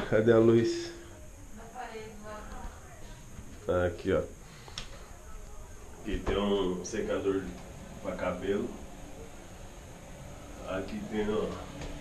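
A man talks close by, with pauses.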